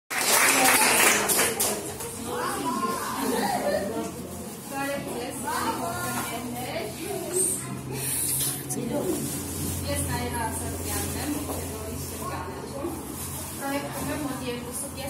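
A woman speaks with animation to a group.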